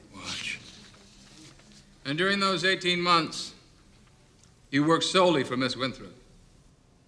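A man speaks quietly and close by.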